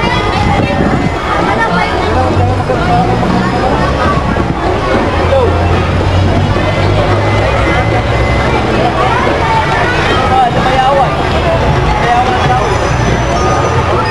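A large outdoor crowd chatters all around.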